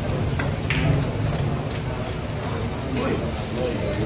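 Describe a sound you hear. Pool balls clack together and roll on the table.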